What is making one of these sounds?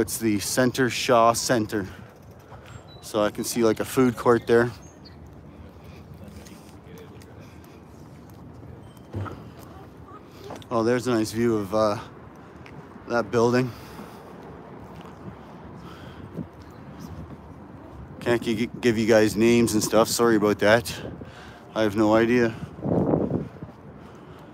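A young man talks calmly close by, in short bursts.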